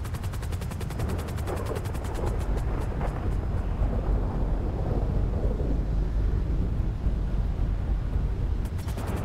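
A helicopter engine roars with a low, constant rumble.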